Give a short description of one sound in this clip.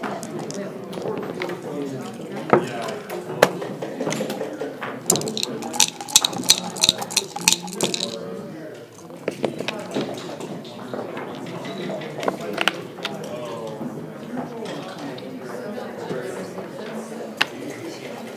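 Wooden checkers click and slide on a board.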